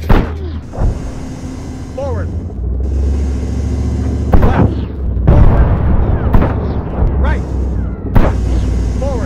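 Heavy guns fire in loud bursts.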